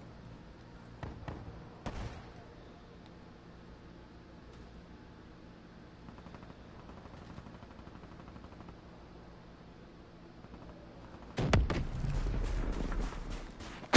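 Gunfire cracks in short, rapid bursts.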